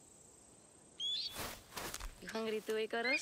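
An eagle flaps its wings.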